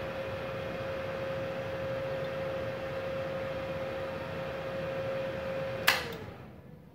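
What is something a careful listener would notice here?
An electric machine hums steadily, then stops.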